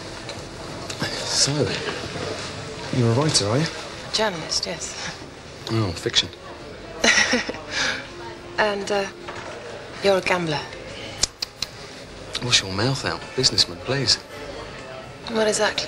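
A woman speaks quietly up close.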